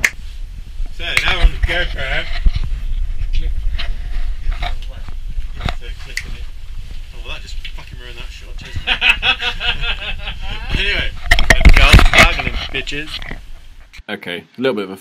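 A young man in a ski mask talks close by.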